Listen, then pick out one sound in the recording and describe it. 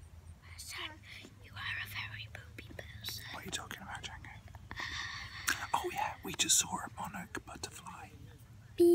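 A young girl talks animatedly, close up.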